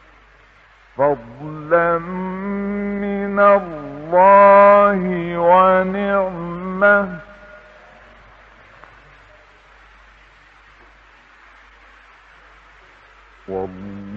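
An elderly man chants in a long, wavering melodic voice through an old recording.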